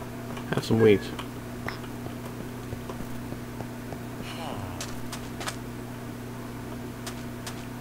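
Footsteps fall on sand.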